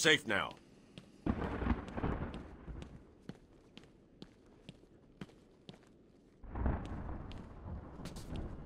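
Footsteps tap on a hard tiled floor.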